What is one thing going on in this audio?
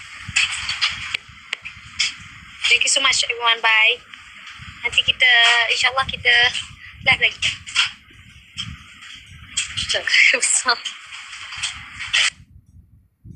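A young woman talks animatedly and close, as if into a phone's microphone.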